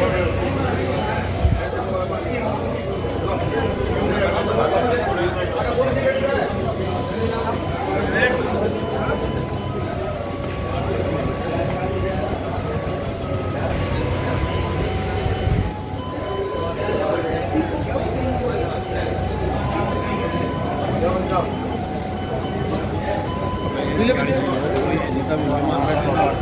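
Several men talk over one another close by.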